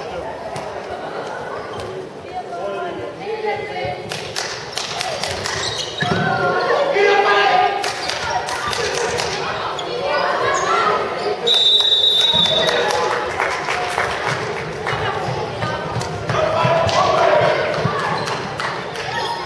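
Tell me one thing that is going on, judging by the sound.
A ball bounces on the floor with hollow thuds.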